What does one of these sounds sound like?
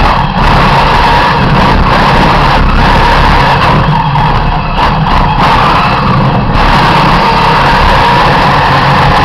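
A race car engine roars loudly up close, its pitch rising and dropping with gear changes.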